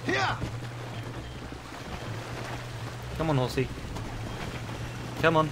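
A horse splashes at a gallop through shallow water.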